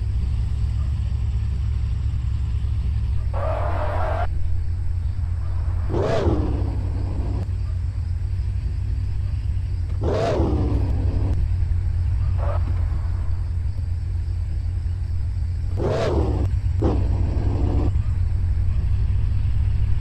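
A sports car engine hums low and steady while the car drives slowly.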